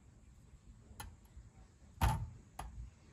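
A metal knife taps against a wire grill.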